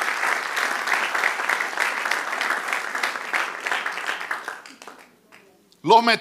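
An audience claps and applauds in a large hall, then fades out.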